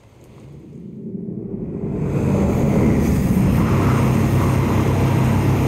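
A flying machine's engines roar, swelling louder as it draws near.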